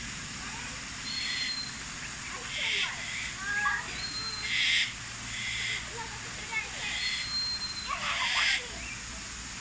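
A parrot gives harsh, raspy squawks again and again.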